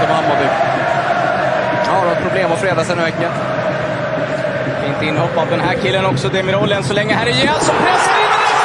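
A large stadium crowd murmurs and chants.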